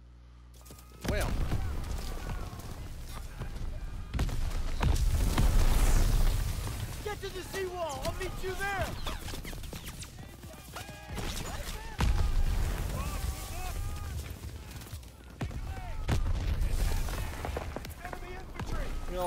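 Explosions boom loudly nearby.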